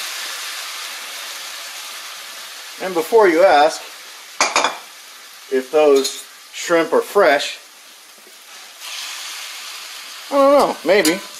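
Shrimp sizzle steadily in a hot pan.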